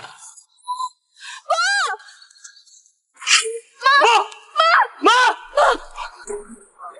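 A young woman speaks in a distressed voice.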